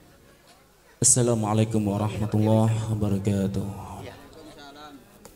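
A young man sings loudly through a microphone.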